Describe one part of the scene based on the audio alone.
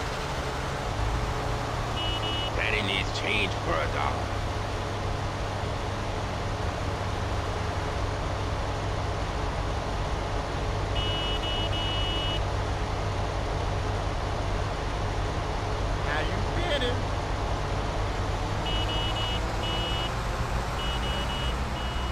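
Car engines hum steadily as traffic drives past.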